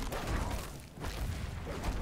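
Blows land with heavy, crunching thuds.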